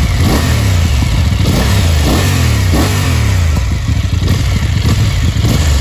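A motorcycle engine rumbles loudly close by, revving up and dropping back again and again.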